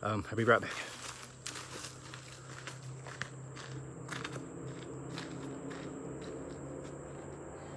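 Footsteps crunch on a dirt path as a man walks.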